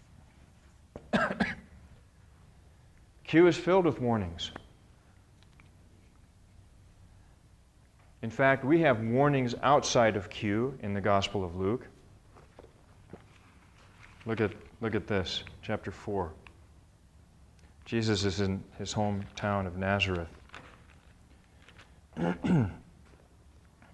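A middle-aged man speaks calmly in bursts, with pauses.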